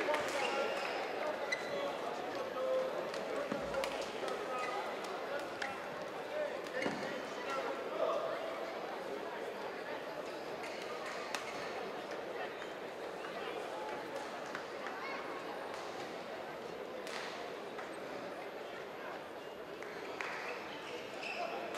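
A large indoor crowd murmurs and chatters in an echoing hall.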